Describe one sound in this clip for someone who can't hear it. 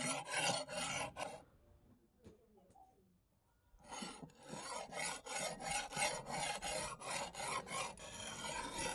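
A metal disc scrapes back and forth across a wet sharpening stone in quick strokes.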